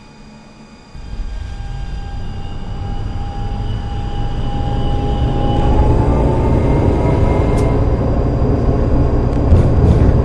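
A tram starts moving and its motor whines, rising in pitch as it speeds up.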